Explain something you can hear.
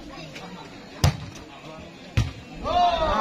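A volleyball is smacked hard by a hand.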